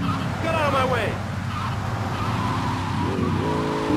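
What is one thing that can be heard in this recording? Tyres screech as a car drifts around a corner.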